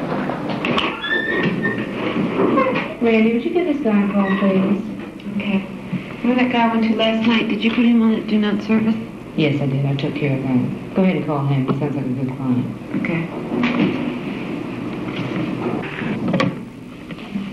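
A woman speaks with animation across a room.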